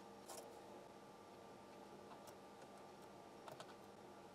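A soldering iron sizzles faintly against a metal joint.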